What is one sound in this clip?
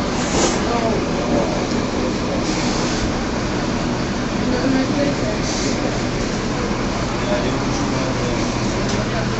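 A bus engine idles nearby with a steady low rumble.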